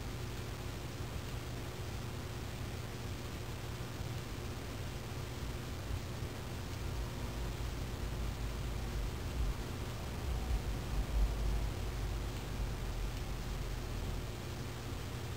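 Soft electronic clicks sound as keys are pressed one by one.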